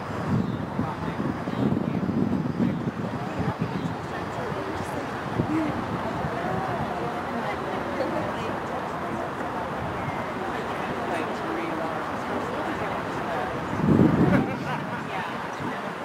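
A crowd of people chatters in the distance outdoors.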